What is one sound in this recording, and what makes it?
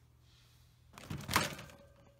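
Wire cage bars rattle and clink as a hand reaches in.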